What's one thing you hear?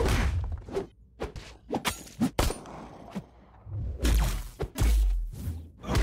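Metal blades clang and swish.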